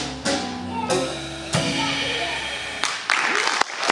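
An electric guitar strums chords.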